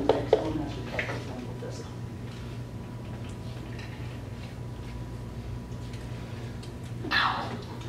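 A man speaks calmly in a room.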